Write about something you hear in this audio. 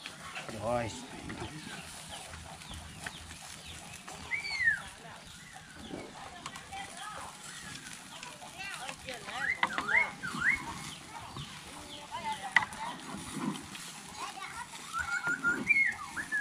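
Food bubbles and sizzles in a wok.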